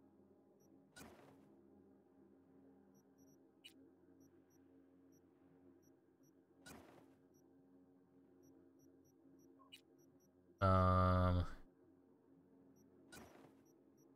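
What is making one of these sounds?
Soft interface clicks sound now and then as menu items are selected.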